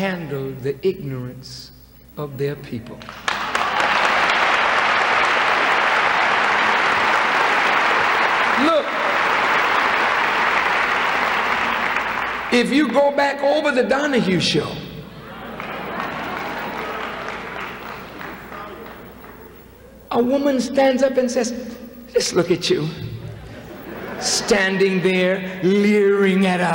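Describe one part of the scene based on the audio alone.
A man speaks forcefully through a microphone in a large echoing hall.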